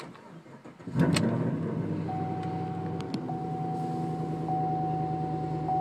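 A car engine starts with a roar and settles into a steady idle.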